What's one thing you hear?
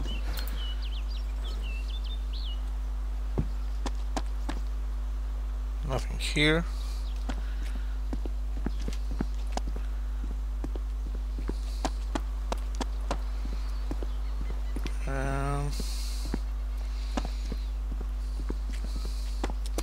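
Footsteps thud steadily on wooden planks and stone steps.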